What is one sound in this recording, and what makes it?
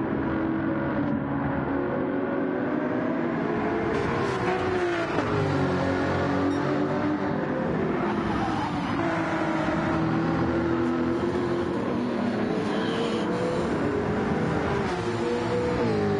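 A racing car engine roars loudly, its pitch rising and dropping as it shifts gears.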